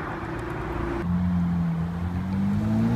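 A sports car engine growls and revs up, rising in pitch.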